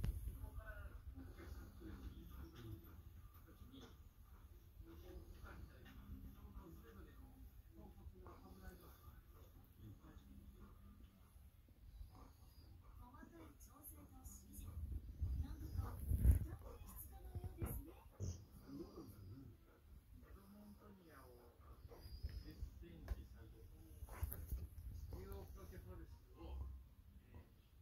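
A television plays voices and music quietly in the room.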